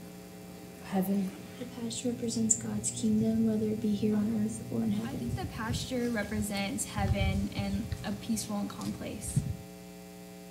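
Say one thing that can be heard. A teenage girl talks calmly through an online call.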